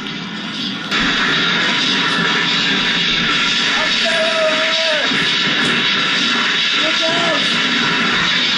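A boy blows hard through a long tube, making a rushing hiss.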